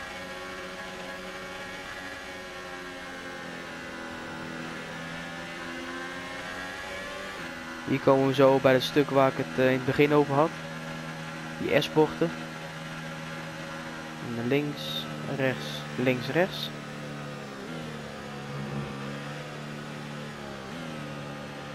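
A Formula One car's hybrid V6 turbo engine drones at part throttle.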